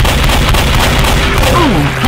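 A zombie snarls and screams up close.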